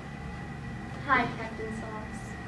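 A second young woman answers with a short, rising remark.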